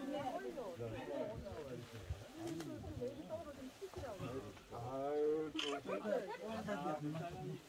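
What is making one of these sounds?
Several men and women chat with each other close by, outdoors.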